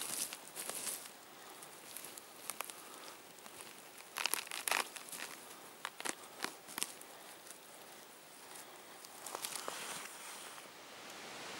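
A hand scrapes and rustles through dry forest litter and soil.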